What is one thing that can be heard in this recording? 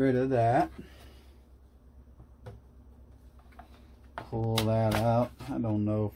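Small plastic parts click and tap softly as a cable is fitted into place.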